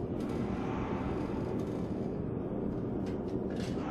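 An old wheelchair creaks as it rolls.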